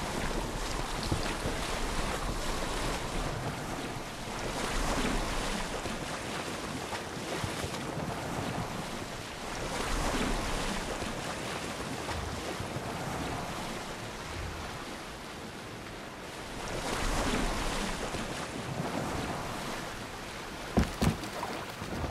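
Water splashes and rushes steadily against a boat's hull.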